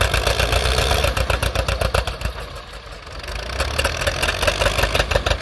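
Old tractor engines roar and chug loudly outdoors.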